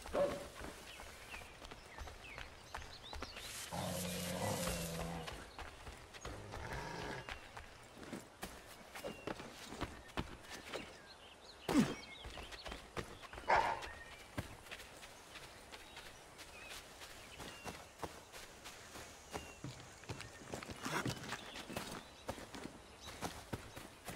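Footsteps run quickly over grass and forest ground.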